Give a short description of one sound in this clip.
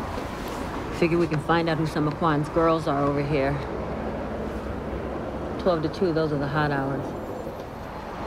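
A woman speaks with feeling, close by.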